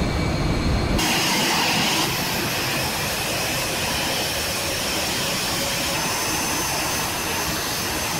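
A jet engine whines and roars from outside as a plane flies past.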